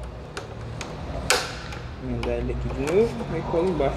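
Small plastic parts click and snap.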